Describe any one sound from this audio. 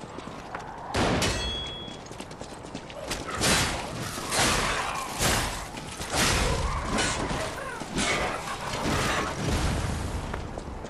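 Heavy weapon blows land with loud thuds and swishes.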